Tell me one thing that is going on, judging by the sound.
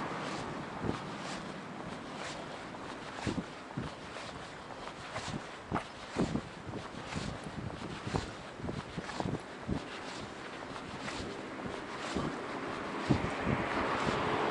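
A bicycle rattles and knocks over bumps in the path.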